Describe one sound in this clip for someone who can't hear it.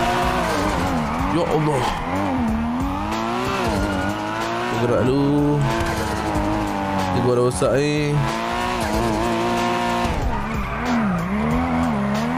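A sports car engine revs and roars as the car speeds up and slows down.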